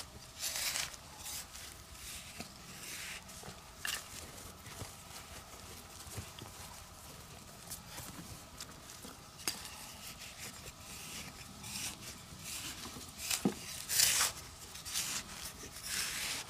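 Soil and clods thud and scatter as they are dumped.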